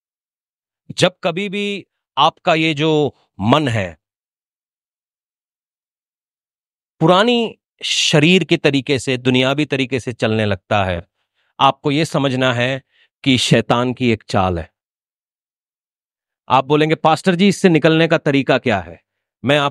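A man preaches with animation through a microphone and loudspeakers, in bursts with pauses.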